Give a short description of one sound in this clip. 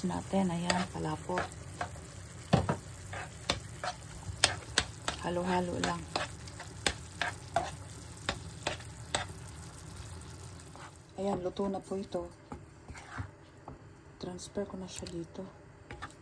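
A spoon scrapes and stirs thick food in a metal pan.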